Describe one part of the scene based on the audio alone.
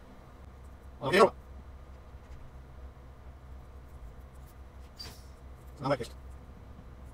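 A game vent clanks and whooshes twice.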